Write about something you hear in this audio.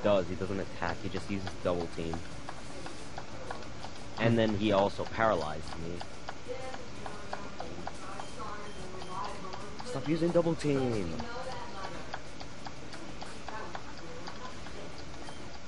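Chiptune video game music plays softly.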